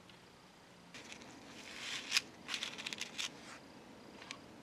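A thin metal chain clinks softly as it is handled.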